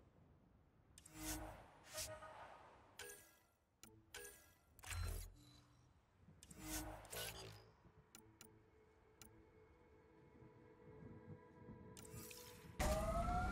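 Soft electronic blips sound every few seconds.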